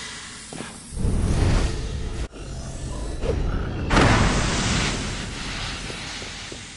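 A smoke bomb bursts with a loud hiss.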